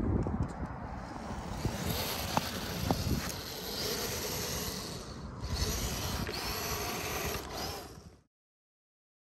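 A small toy car's electric motor whines as it drives over sand.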